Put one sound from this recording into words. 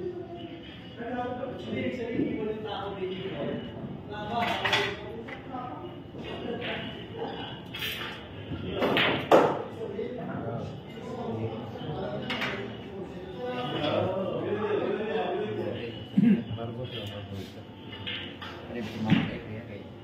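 Men talk casually nearby.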